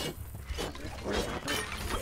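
A sword swings with a sharp whoosh.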